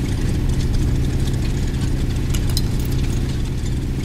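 A key turns in a metal lock.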